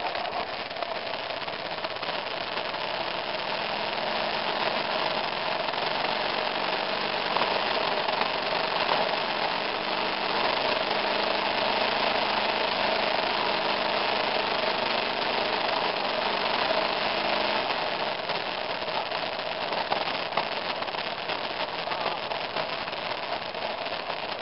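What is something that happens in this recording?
Strong wind gusts roar across open ground.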